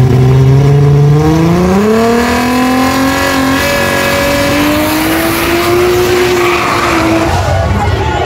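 A race car engine roars loudly and rises in pitch as the car accelerates away.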